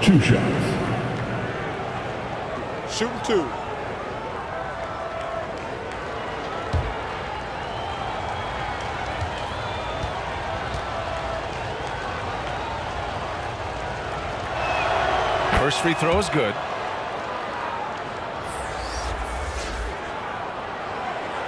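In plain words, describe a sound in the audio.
A large crowd murmurs steadily in an echoing arena.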